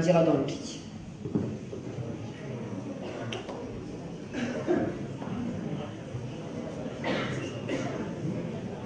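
A young woman speaks calmly into a microphone in an echoing room.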